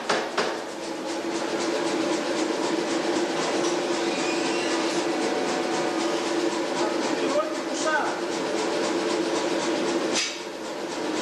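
A hydraulic press hums steadily.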